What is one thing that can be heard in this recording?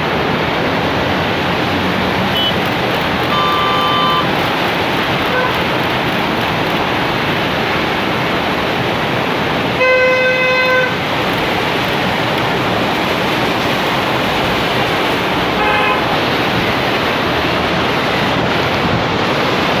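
Car tyres hiss along a wet road.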